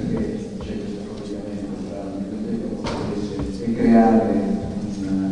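A man speaks calmly into a microphone in a large, echoing hall.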